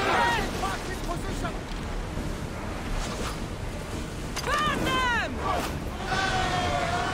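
Cannons boom and explosions burst.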